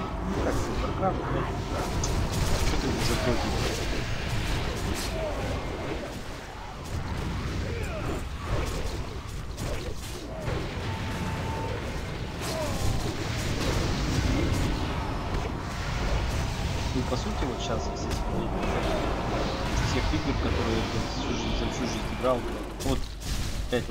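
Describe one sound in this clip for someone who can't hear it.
Spell effects and weapon clashes ring out in a busy game battle.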